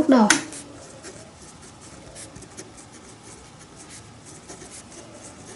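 A marker pen scratches softly on paper.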